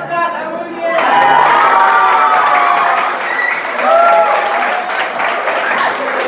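A crowd of women and girls cheers loudly.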